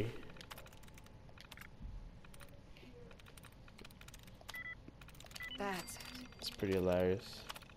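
An old computer terminal clicks and beeps as text is entered.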